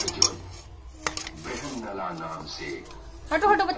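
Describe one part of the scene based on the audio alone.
A metal spatula scrapes and knocks against a metal pan.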